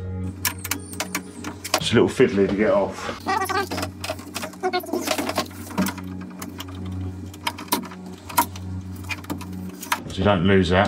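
Metal tools click and clack against a car door panel.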